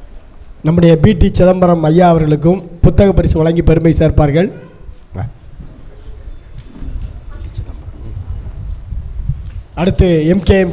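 A man speaks through a microphone and loudspeaker in an echoing room.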